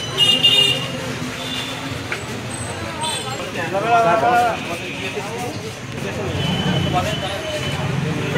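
Several men talk at once close by, in a noisy crowd.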